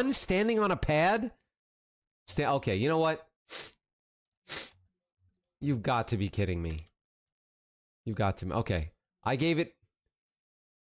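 A young man talks with animation close to a microphone, in short bursts with pauses.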